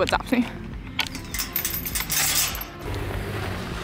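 A metal chain rattles and clinks against a gate.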